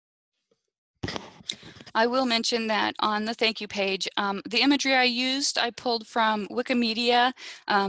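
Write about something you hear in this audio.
A woman speaks calmly through an online call microphone.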